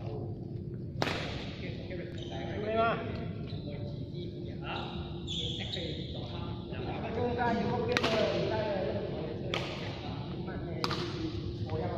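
Badminton rackets smack a shuttlecock in a large echoing hall.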